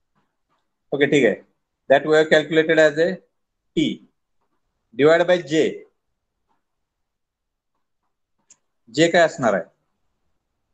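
A man speaks calmly in short phrases through an online call.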